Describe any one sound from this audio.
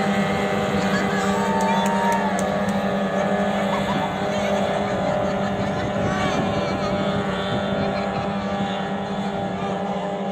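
A boat engine drones steadily.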